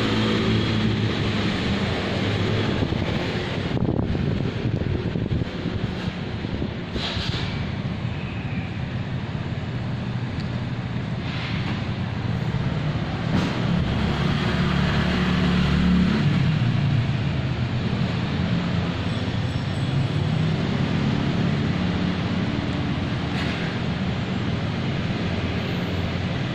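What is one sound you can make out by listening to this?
A cat purrs loudly close by.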